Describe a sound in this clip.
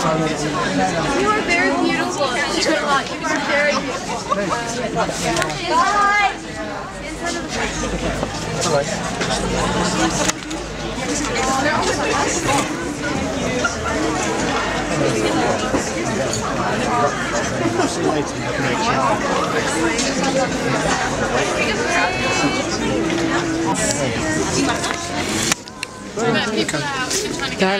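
A crowd of people chatters and calls out close by, outdoors.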